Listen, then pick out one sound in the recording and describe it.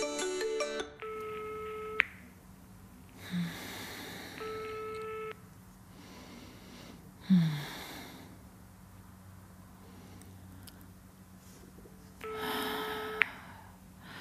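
A phone line rings with a steady beeping tone.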